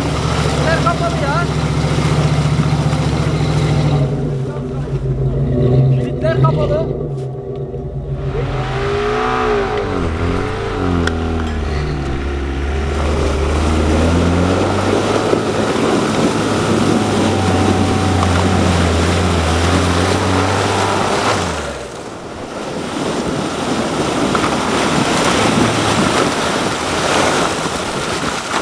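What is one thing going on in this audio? Tyres spin and splash through deep mud.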